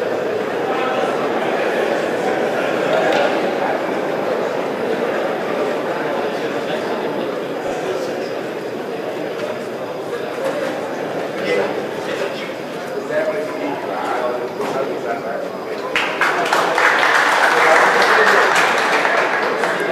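A large crowd of men murmurs and chatters.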